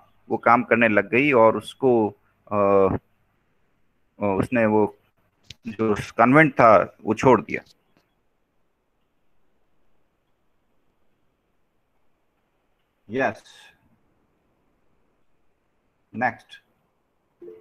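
An elderly man speaks calmly through a computer microphone, with pauses.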